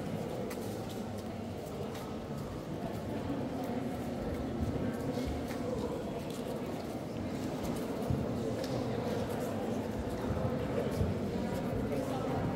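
A group of adults murmurs quietly in a large echoing hall.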